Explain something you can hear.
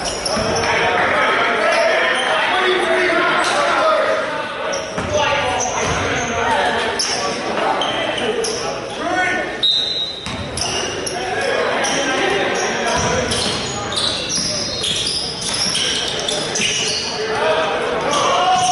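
Men talk and call out to each other across the gym.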